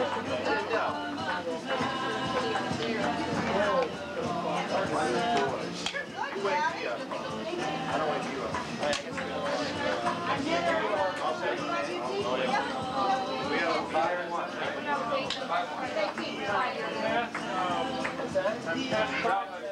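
A crowd of adults and children chatter nearby.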